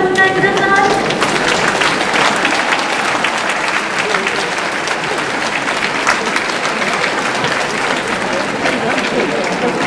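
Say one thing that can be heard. A young woman speaks through a microphone over loudspeakers in a large hall.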